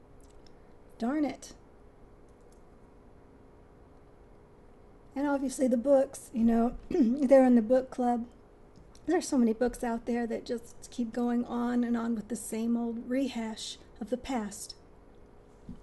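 A middle-aged woman speaks calmly and softly close to a microphone.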